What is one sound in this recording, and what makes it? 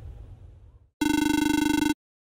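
A low electronic buzzing tone sounds briefly.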